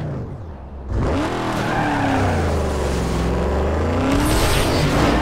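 Tyres screech as a car skids into a drift.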